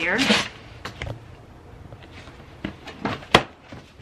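A plastic lid clatters and snaps onto a plastic tub.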